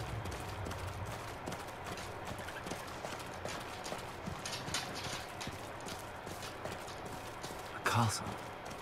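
Hooves clop steadily on a dirt path.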